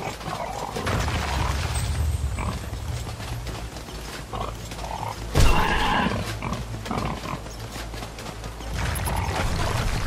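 A large beast's heavy footsteps thud along the ground.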